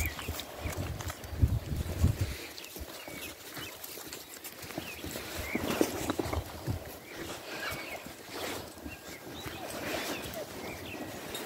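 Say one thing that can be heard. A sheep nibbles and snuffles at a hand close by.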